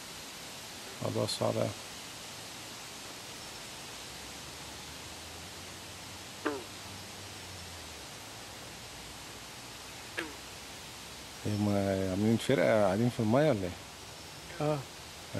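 A bullfrog croaks with deep, throbbing calls nearby.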